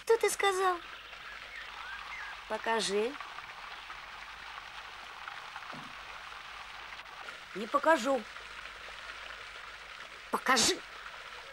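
A teenage boy calls out in short bursts.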